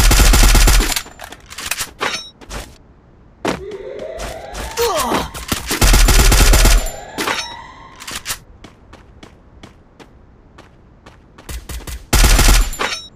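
Footsteps crunch quickly over the ground.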